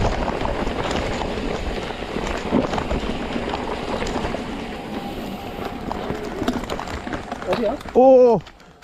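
Bicycle tyres rattle over a rough dirt trail.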